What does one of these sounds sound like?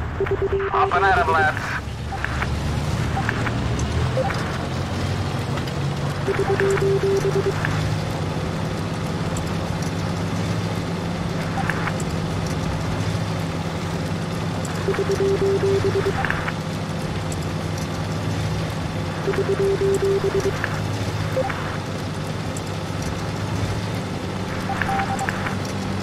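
Tank tracks clatter over the ground.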